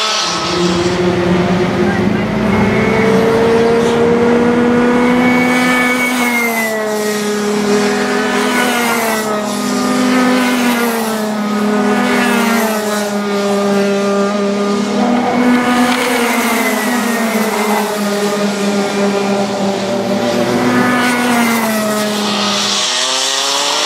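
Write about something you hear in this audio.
Racing kart engines whine loudly, rising and falling in pitch as they speed past and shift.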